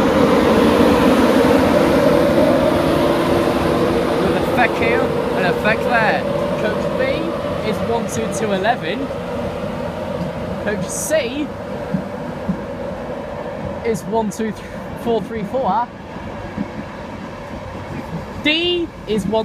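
An electric train rushes past close by with a loud rumble that slowly eases.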